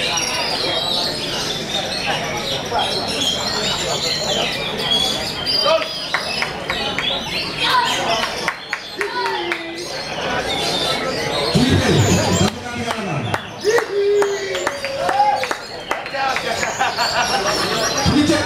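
A bird sings loud, varied whistles and chirps close by.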